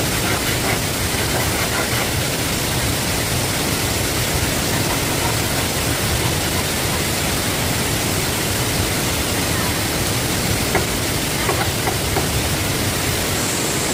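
A machete scrapes and chops along bamboo stalks.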